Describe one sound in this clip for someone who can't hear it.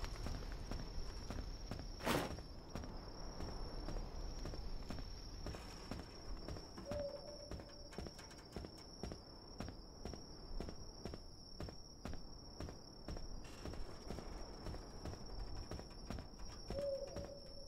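Footsteps tread along a path.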